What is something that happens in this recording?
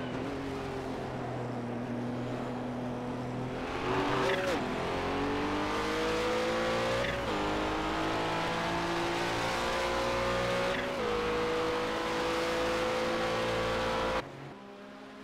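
A racing car engine roars up close, climbing in pitch and dropping with each gear change.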